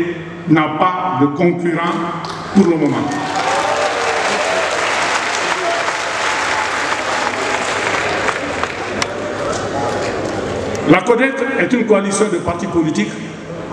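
A man speaks forcefully into a microphone over loudspeakers, echoing in a large space.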